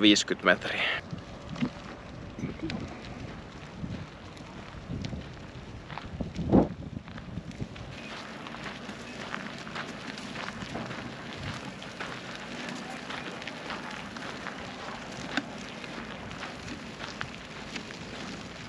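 Wheelchair tyres roll and crunch over gravel.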